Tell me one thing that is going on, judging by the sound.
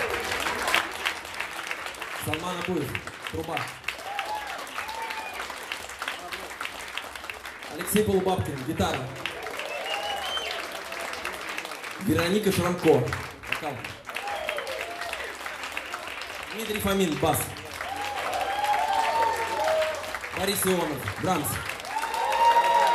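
A band plays jazz with drums, bass and keyboard.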